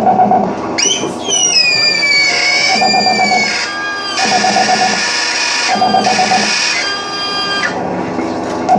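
A performer plays a harmonica into a microphone with bending, wailing notes.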